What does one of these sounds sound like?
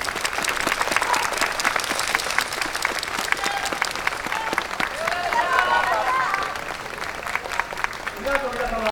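Wooden hand clappers clack sharply in rhythm.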